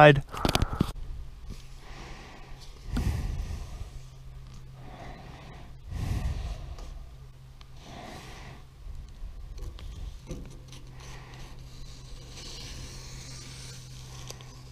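A plastic squeegee scrapes and rubs across a vinyl sheet.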